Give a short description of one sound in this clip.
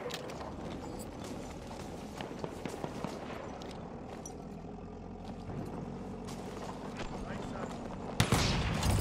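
Gunfire crackles in sharp bursts.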